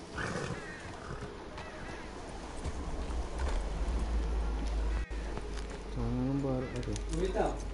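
A horse's hooves clop as it walks over ground.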